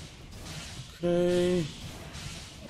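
A short pitched game chime rings out.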